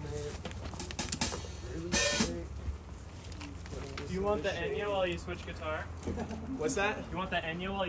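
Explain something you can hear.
A drummer strikes drums and cymbals.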